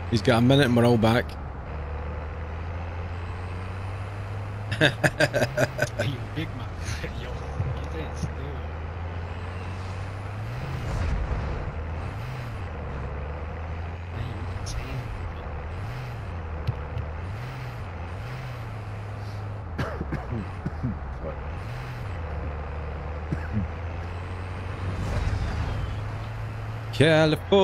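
A heavy truck engine rumbles steadily as it drives.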